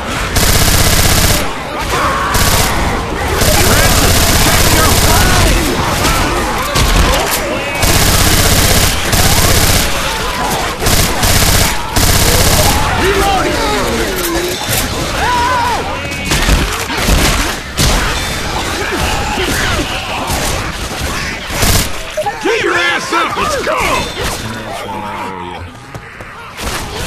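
Men and women shout and call out to each other over game audio.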